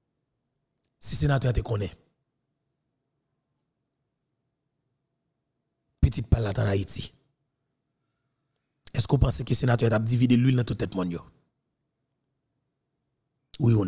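A young man speaks calmly and closely into a microphone, in short phrases with pauses.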